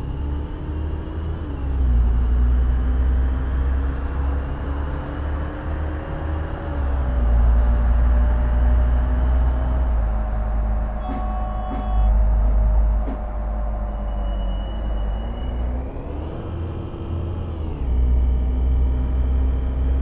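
A bus engine hums and whines, shifting pitch as it changes gear.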